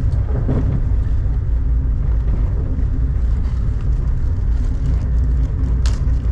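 Rain patters on a train window.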